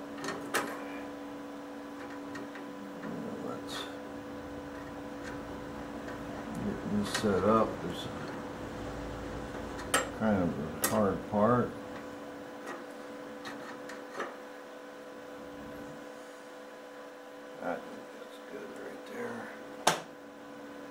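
A window mechanism's metal arms creak and rattle as they are moved by hand.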